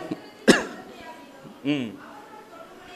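A man coughs into a microphone.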